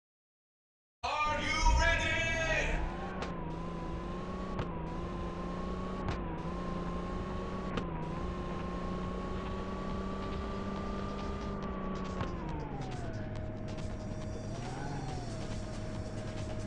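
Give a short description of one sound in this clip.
A game car engine revs up and hums steadily at speed, then drops to an idle.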